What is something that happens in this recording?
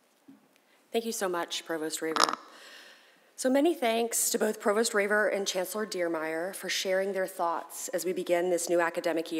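A woman speaks calmly into a microphone over loudspeakers in a large hall.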